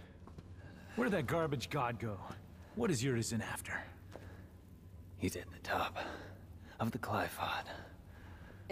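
A young man asks questions with irritation, close by.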